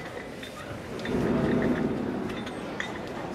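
A woman speaks quietly close by.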